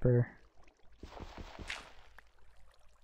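A dirt block crumbles as it is dug out.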